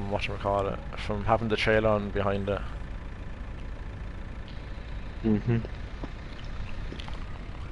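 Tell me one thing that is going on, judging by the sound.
A tractor engine hums steadily at low idle.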